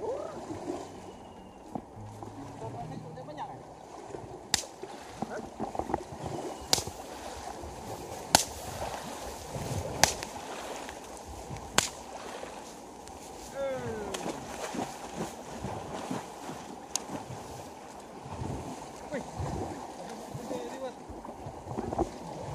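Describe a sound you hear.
Water splashes as a boy wades and thrashes through a shallow pond.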